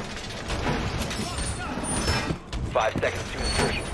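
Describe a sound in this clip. A metal shutter rattles as it is climbed through.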